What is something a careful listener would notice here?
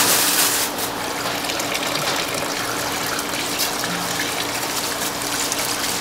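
Hands rub and swish wet rice grains.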